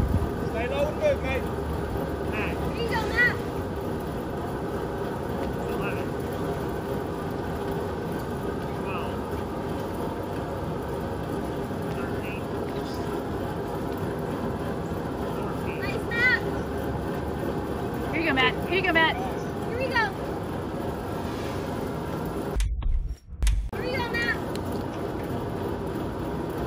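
A large fan whirs steadily nearby.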